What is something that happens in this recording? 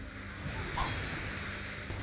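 Magical sound effects whoosh and crackle during a fight.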